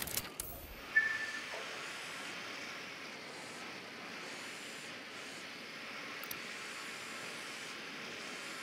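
A small drone hums steadily overhead.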